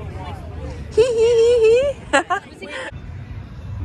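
A young woman laughs and exclaims close by.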